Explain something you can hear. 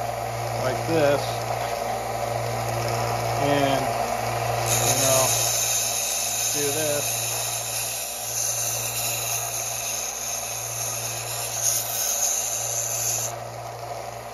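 A wooden dowel grinds against a spinning sanding belt.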